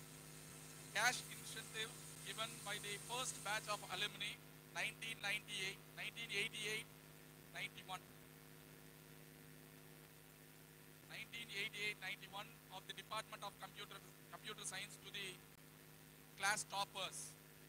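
A man speaks into a microphone over loudspeakers in a large echoing hall, announcing.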